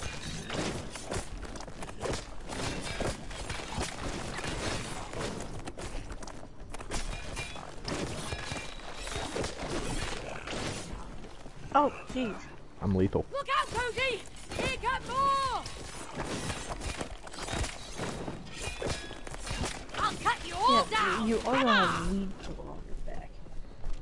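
Blows and magic blasts crash in a rapid fight.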